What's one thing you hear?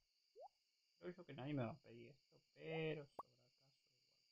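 A young man talks casually and animatedly into a close microphone.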